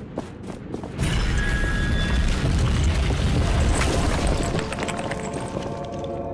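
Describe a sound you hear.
A magical object rises with a deep rumble and a bright shimmer.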